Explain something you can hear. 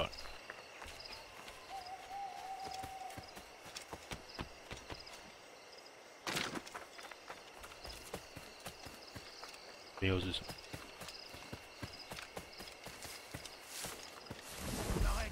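Footsteps crunch through grass and undergrowth.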